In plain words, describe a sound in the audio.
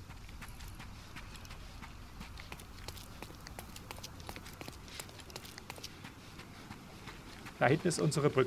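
Footsteps tap quickly on cobblestones as a man runs.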